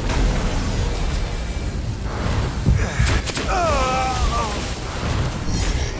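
Energy blasts boom and crackle in quick bursts.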